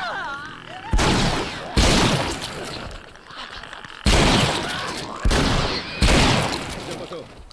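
Loud shotgun blasts go off and echo.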